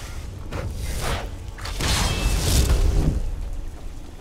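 A magic spell crackles and bursts with a deep rumbling whoosh.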